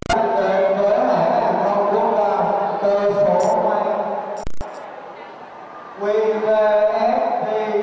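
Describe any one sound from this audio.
A young man sings into a microphone, heard through loudspeakers.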